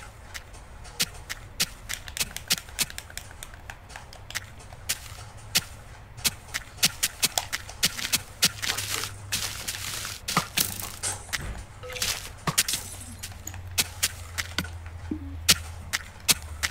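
Footsteps tread quickly over grass.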